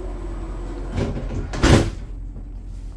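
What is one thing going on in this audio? Sliding train doors close with a heavy thud.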